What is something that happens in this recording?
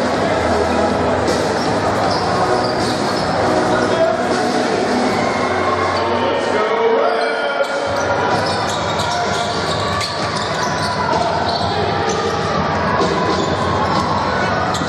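A large crowd murmurs and cheers in an echoing indoor hall.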